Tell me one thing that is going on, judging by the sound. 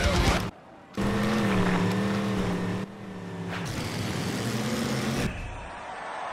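An off-road truck engine revs loudly.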